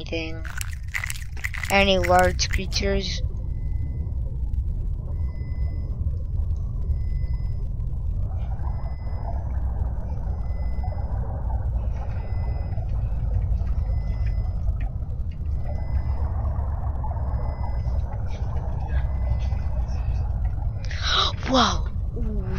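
Water rumbles low and steady all around.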